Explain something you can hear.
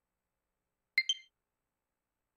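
A short two-note electronic chime sounds.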